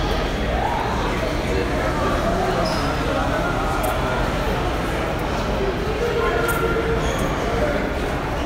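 A crowd of people chatters nearby in an echoing corridor.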